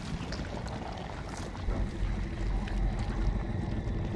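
Water trickles and laps over mud.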